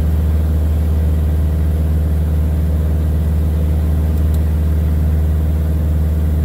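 A small plane's engine drones steadily and loudly close by.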